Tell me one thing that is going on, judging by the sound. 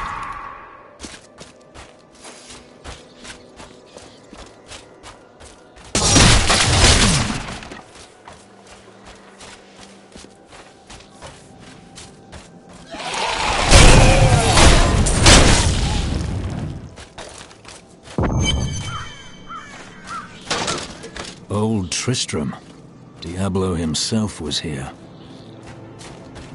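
Footsteps crunch steadily on the ground.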